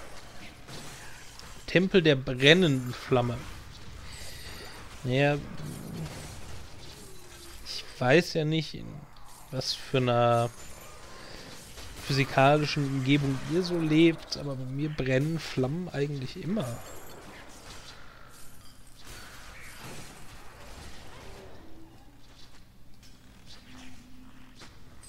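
Magic blasts and sword strikes clash in a fight.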